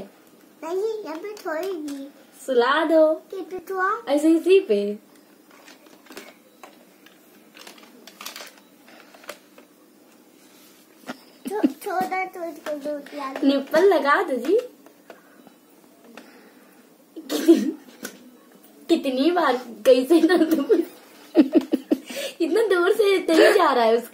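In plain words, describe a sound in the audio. A little girl talks and babbles close by in a small high voice.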